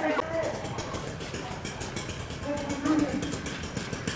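Men shout commands loudly nearby.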